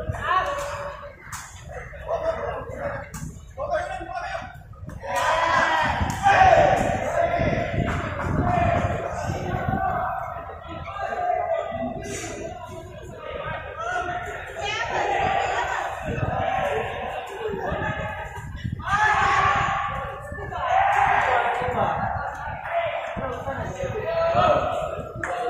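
Young men on a court shout to each other.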